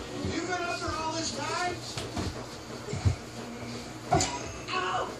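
A child speaks excitedly nearby.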